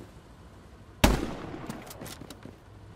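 A rifle fires a single loud shot that echoes.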